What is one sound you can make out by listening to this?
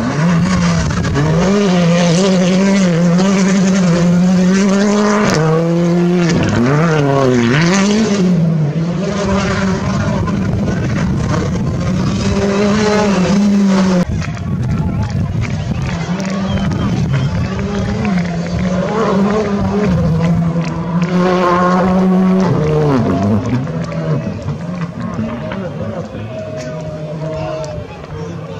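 A rally car engine roars loudly at high revs, rising and falling as the driver shifts gears.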